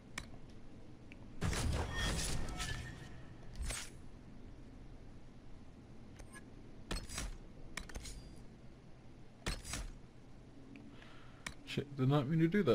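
Short menu clicks and chimes sound now and then.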